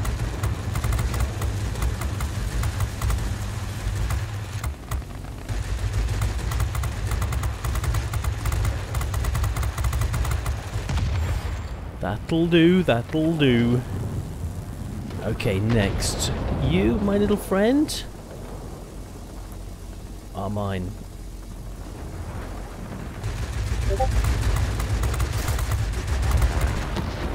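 Aircraft machine guns fire in rapid, rattling bursts.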